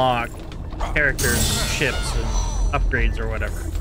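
Magical sparkling chimes shimmer and swirl.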